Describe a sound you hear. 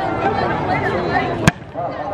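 A volleyball is struck with a hand.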